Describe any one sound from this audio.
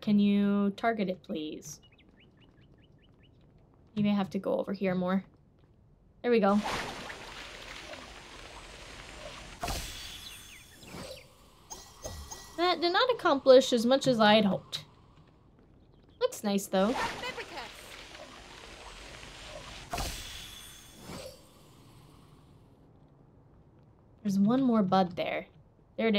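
A young woman talks with animation close to a microphone, in short bursts.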